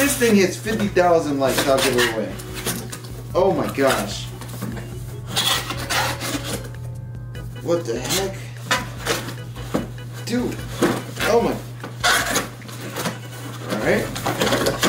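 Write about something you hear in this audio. Cardboard packaging rustles and scrapes as a box is opened.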